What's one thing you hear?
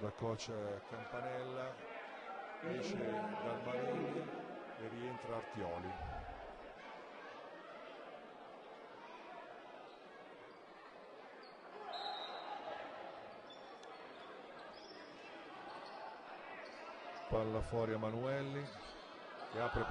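A small crowd murmurs in a large echoing hall.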